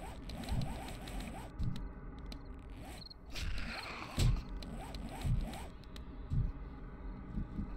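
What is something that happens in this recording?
A torch flame crackles softly.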